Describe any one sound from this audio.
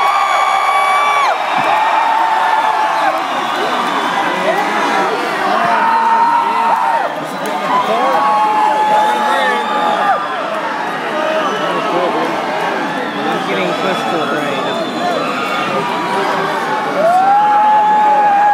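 A large crowd screams and cheers loudly in a big echoing space.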